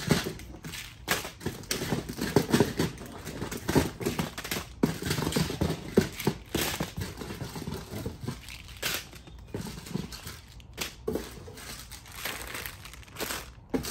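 Plastic candy bags crinkle and rustle as they are handled.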